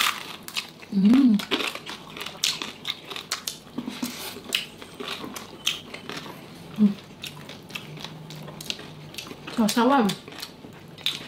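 A man hums with pleasure while eating.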